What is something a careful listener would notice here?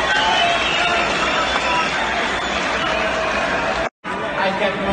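A large crowd chatters and cheers in a big echoing hall.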